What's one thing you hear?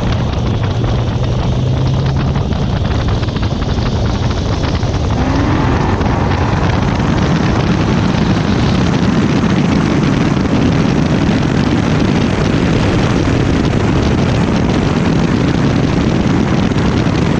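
A supercharged V8 sports car roars at full throttle.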